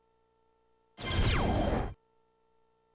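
An electronic dartboard plays a short, falling electronic sound effect.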